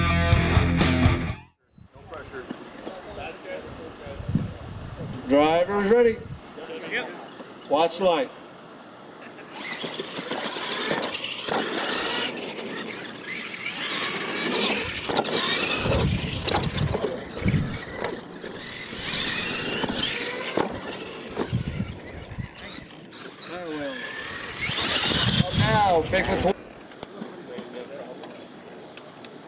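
Small electric motors whine as toy trucks race over dirt.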